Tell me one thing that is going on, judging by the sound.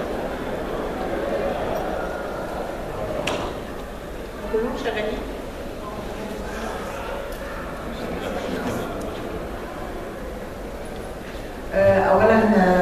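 A woman speaks calmly and faintly through a microphone.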